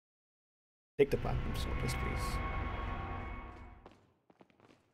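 A short bright musical jingle plays.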